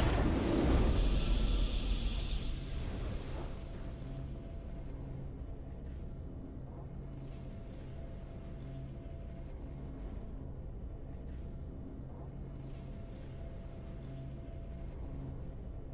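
A triumphant burst of music swells at the end of a game match.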